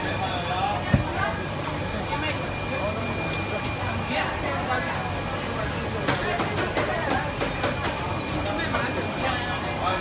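A cleaver chops through fish with heavy knocks.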